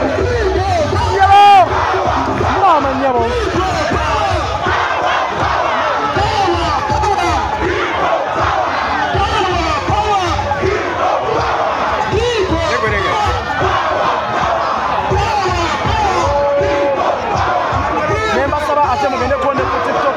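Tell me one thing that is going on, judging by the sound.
A large crowd outdoors shouts and cheers loudly nearby.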